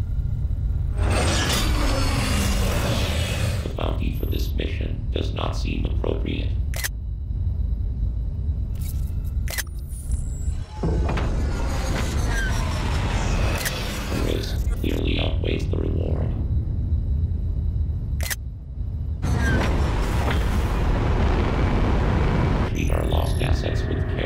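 A spaceship engine roars as it flies past.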